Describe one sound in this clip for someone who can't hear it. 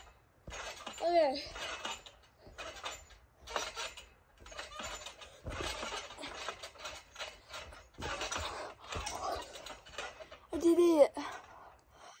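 A young girl squeals.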